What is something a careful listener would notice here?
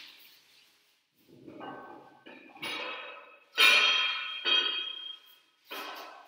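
Weight plates clink as a barbell is lifted from the floor.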